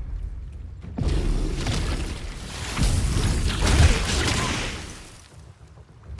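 A magic spell bursts with a loud crackling whoosh.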